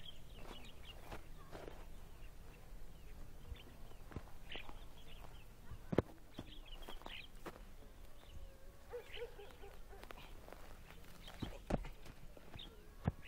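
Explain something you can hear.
Footsteps crunch on a dry dirt path.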